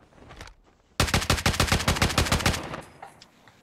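A rifle fires a rapid burst of gunshots.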